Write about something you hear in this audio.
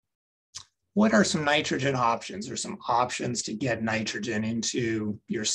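A man speaks calmly through a microphone, as on an online call.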